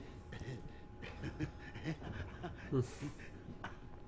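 A man gulps a drink.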